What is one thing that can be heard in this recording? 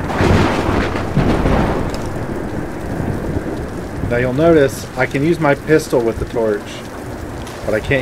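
A torch flame crackles and roars.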